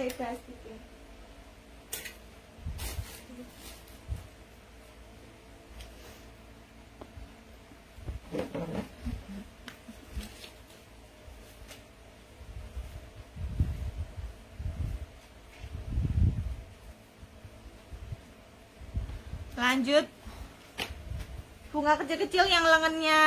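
Fabric rustles as clothes are handled close by.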